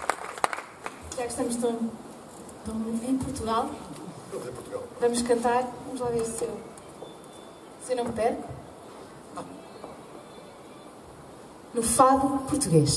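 A woman sings through a microphone in an echoing space.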